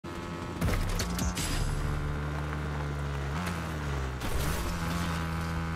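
A dirt bike engine drones and shifts in pitch.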